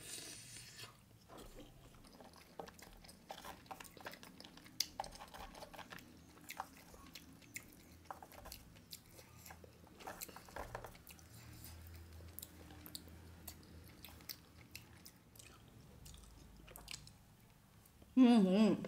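A young woman chews food and smacks her lips close up.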